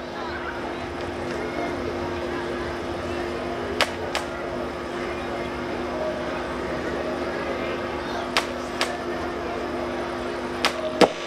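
A woman sings into a microphone, heard through loudspeakers outdoors.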